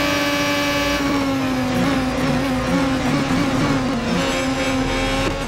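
A racing car engine drops in pitch with quick downshifts as the car brakes.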